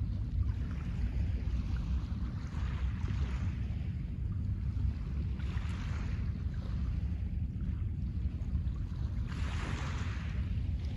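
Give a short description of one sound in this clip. Small waves wash gently onto a pebble shore, in bursts that come and go.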